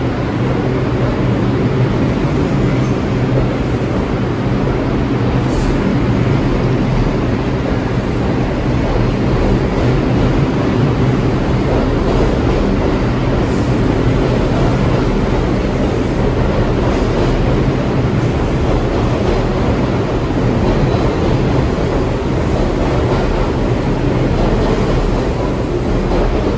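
The rumble of a subway train echoes around a large underground hall.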